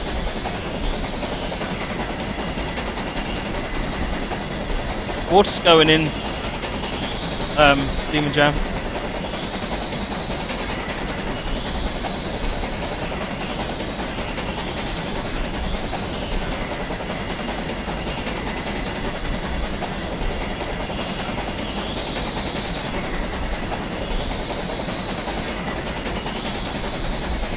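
Train wheels clatter over rails.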